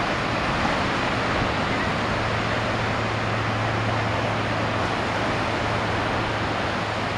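Ocean waves roll in and break steadily on the shore.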